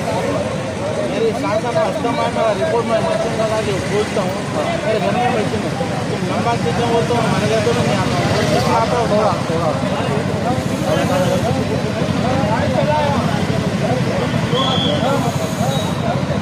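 A man speaks into a handheld microphone up close, animatedly.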